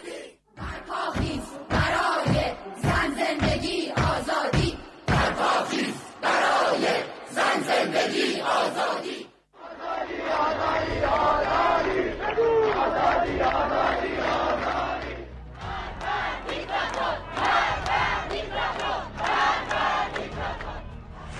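A large crowd chants loudly in rhythm outdoors.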